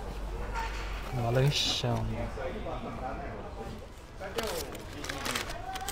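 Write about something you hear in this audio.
Paper wrappers crinkle and rustle.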